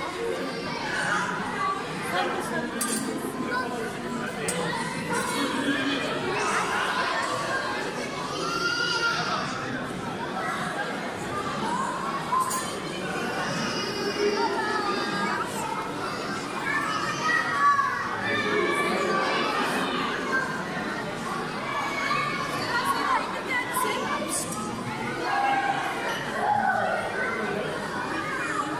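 A crowd of adults and children chatters nearby.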